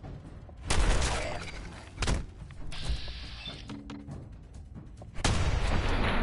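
Loud gunshots fire with a booming echo.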